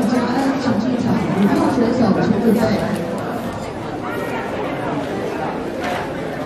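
People chatter in the background of a large echoing hall.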